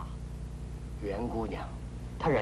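A man speaks in reply at close range.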